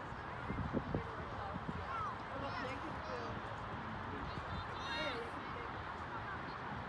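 Wind blows across an open outdoor field.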